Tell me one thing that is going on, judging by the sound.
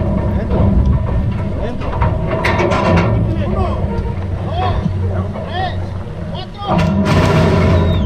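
A horse shifts and knocks against a metal starting gate.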